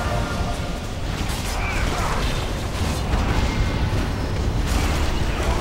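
Fiery spell effects crackle and burst.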